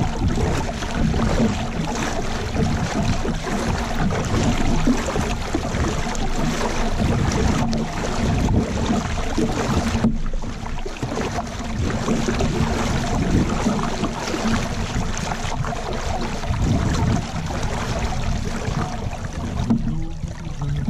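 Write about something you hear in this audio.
Water rushes and gurgles along a boat's hull.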